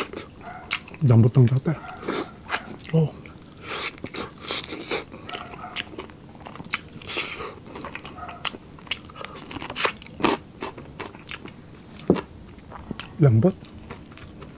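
A man hums with pleasure while eating.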